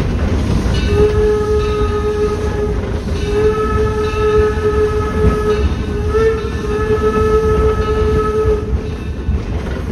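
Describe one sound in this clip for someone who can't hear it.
A steam whistle blows loud and long several times.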